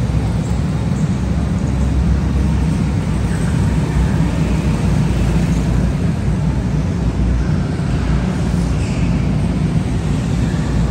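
Go-kart engines buzz and whine as karts speed past in a large echoing hall.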